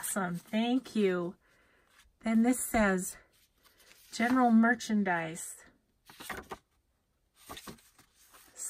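Stiff paper cards rustle and shuffle in hands.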